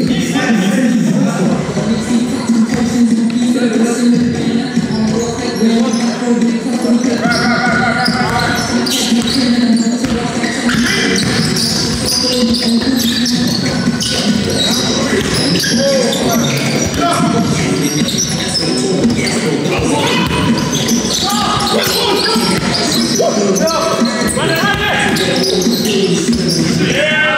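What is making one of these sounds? Sneakers squeak on a wooden floor in a large echoing hall.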